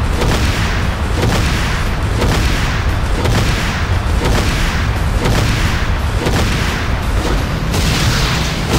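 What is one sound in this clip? A tank cannon fires in repeated loud blasts.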